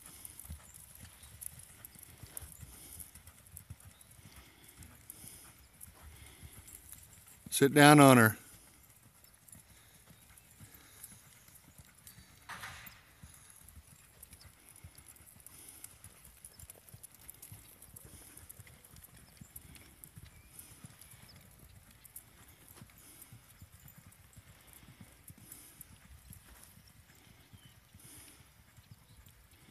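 A horse lopes over soft sand with muffled hoofbeats.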